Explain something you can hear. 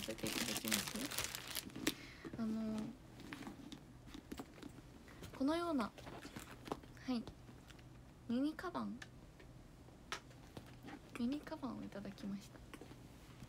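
A young woman speaks softly and brightly, close to a microphone.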